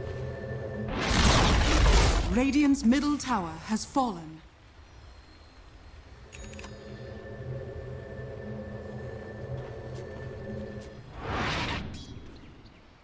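Magic spells whoosh and crackle in loud bursts during a fight.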